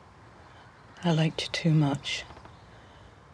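A woman speaks in a worried voice, close by.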